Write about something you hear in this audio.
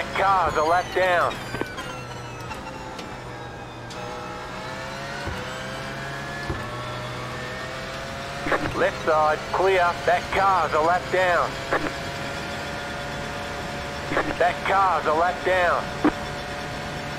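A race car engine snarls in short bursts as gears shift.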